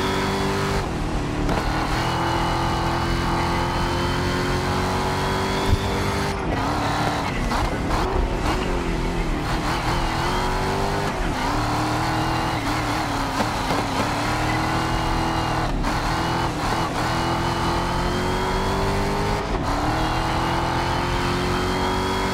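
A race car engine roars and revs up through the gears, dropping in pitch at each gear change.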